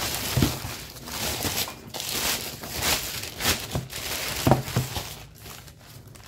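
A plastic mailer bag crinkles and rustles as it is handled.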